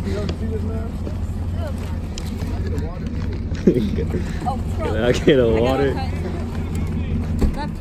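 A woman talks and laughs excitedly nearby.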